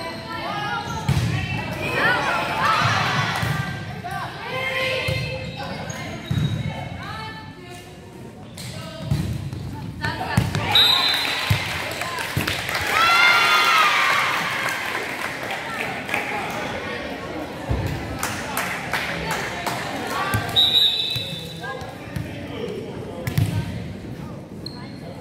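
Young women shout and call out across a large echoing gym.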